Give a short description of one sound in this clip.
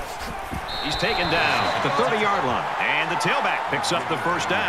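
A large crowd cheers and roars in a big stadium.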